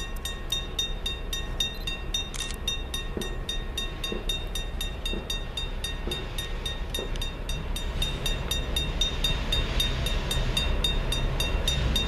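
A diesel locomotive engine rumbles and grows louder as a train approaches.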